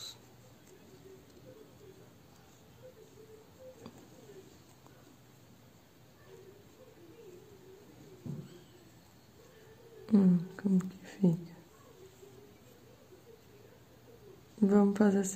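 A crochet hook softly rustles through cotton thread.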